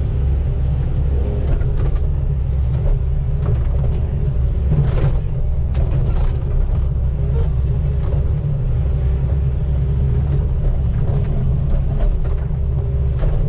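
A diesel hydraulic excavator engine rumbles under load, heard from inside the cab.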